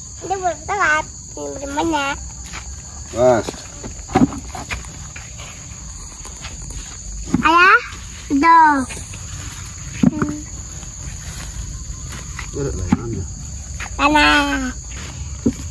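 A young girl speaks in a high voice nearby.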